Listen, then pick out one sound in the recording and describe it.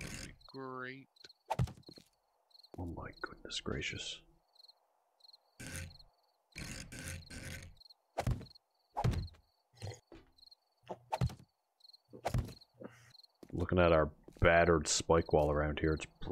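Wooden objects knock as they are set down one after another.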